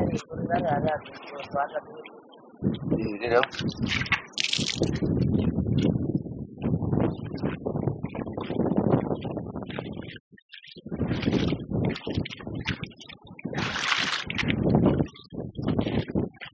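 Wet cloth squelches and splashes in shallow muddy water.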